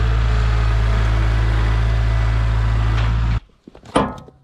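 A tractor engine runs loudly close by.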